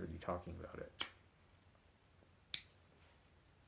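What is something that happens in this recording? A lighter clicks as it is struck.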